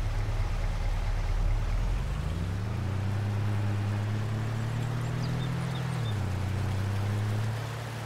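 A pickup truck engine rumbles and rises in pitch as it speeds up.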